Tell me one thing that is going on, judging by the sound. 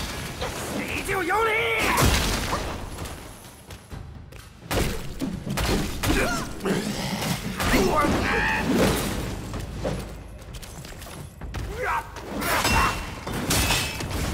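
Sword blows clash and strike in a fight.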